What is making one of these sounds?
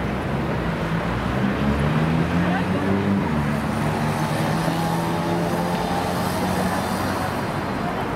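An engine revs and rises in pitch as a vehicle pulls away.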